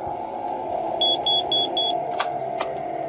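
Electronic keypad beeps sound four times in quick succession.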